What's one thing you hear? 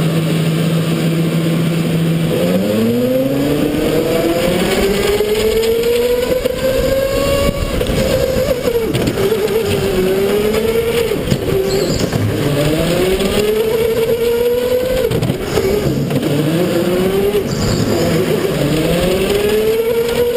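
A go-kart engine revs up and down loudly close by.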